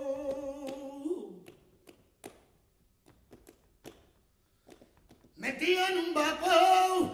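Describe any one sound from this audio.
A man sings a long, wavering note through a microphone.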